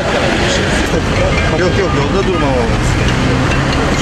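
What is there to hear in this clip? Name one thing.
A man talks on a phone.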